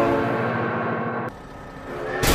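A train horn blares.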